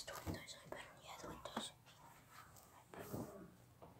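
A door bumps and clicks as it moves.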